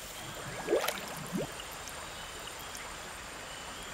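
Water flows gently in a river.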